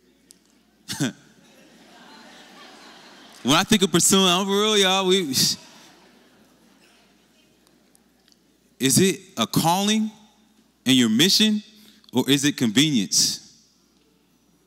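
A man speaks with animation into a microphone over loudspeakers in a large echoing hall.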